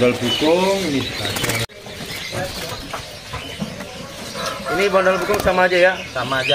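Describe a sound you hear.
A songbird sings loud, varied warbling phrases close by.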